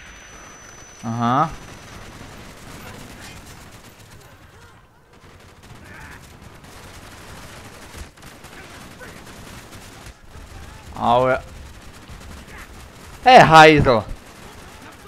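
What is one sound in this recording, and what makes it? A man shouts loudly and angrily.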